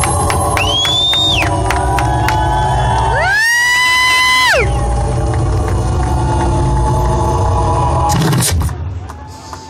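Loud amplified music booms from a stage.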